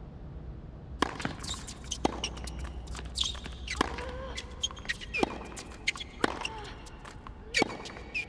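A tennis racket strikes a ball.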